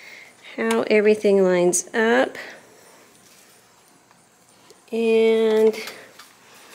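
A sewing machine's mechanism squeaks loudly as it is turned by hand.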